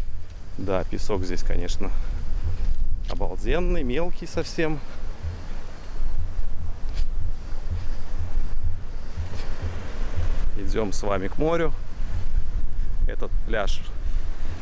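Small waves wash gently onto a sandy shore.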